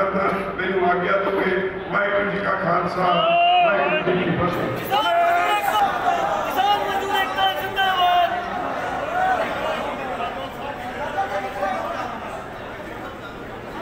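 An elderly man speaks loudly over a loudspeaker, echoing outdoors.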